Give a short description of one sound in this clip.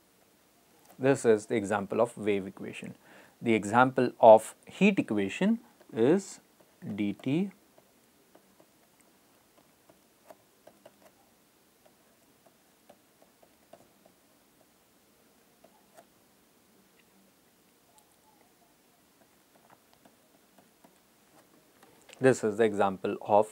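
A middle-aged man speaks calmly into a close microphone, with long pauses.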